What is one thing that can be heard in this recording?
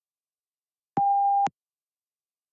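A short electronic beep sounds once.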